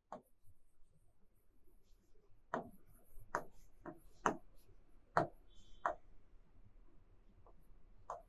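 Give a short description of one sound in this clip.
A marker squeaks and scratches on a whiteboard.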